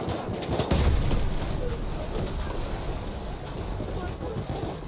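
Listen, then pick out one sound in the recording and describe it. Debris clatters down after an explosion.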